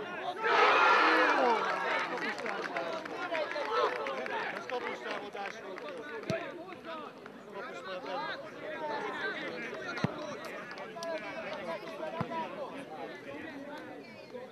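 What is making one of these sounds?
Young men shout excitedly as they celebrate.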